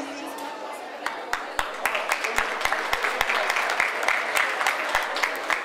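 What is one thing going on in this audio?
A crowd claps in applause.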